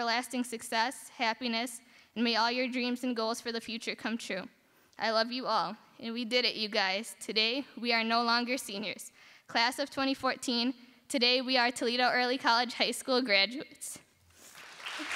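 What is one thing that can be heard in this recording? A young woman speaks into a microphone with emotion, heard through loudspeakers in a large hall.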